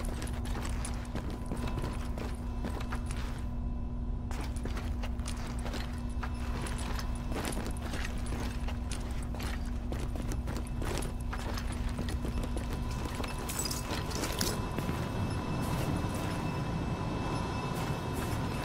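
Footsteps tread steadily across the floor.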